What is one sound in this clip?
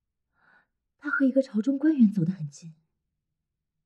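A young woman speaks anxiously, close by.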